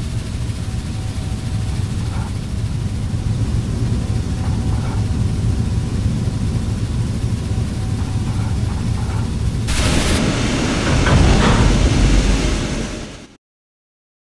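A diesel train engine rumbles low and steady.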